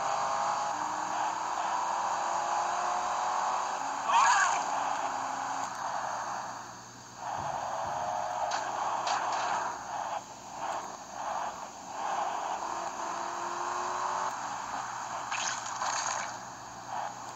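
A car engine drones steadily.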